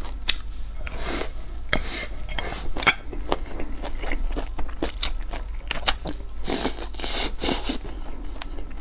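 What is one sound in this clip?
A young woman slurps noodles loudly, close up.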